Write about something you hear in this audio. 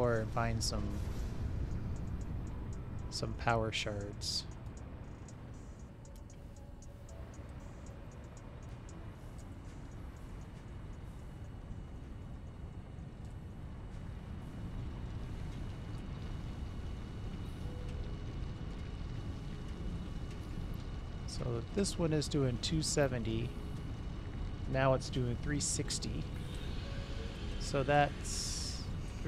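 Factory machines hum with a low, steady rumble.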